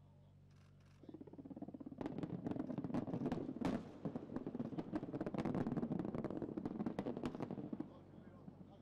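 A rapid series of explosive blasts booms and crackles.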